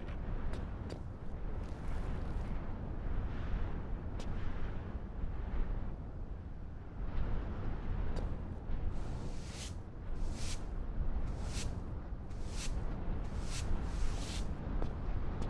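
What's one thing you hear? A paint roller swishes in repeated strokes.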